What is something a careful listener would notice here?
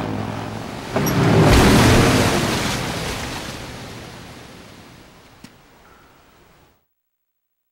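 Water crashes down in a loud rushing torrent and slowly fades.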